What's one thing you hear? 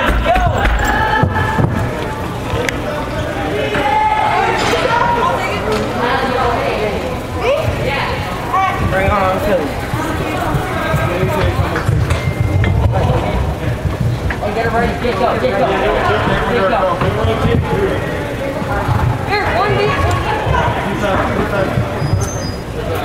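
Boys and adults shout and call out in a large echoing indoor hall.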